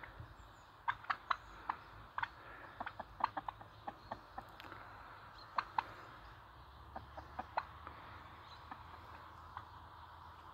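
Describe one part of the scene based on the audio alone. Chickens cluck and squawk nearby.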